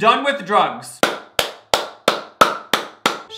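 A young man claps his hands slowly and steadily.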